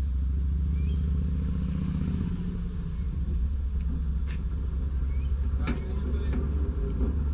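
A ferry engine rumbles steadily.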